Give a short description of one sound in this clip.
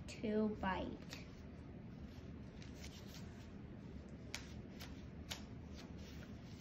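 Paper pages rustle and crinkle as a boy handles a booklet.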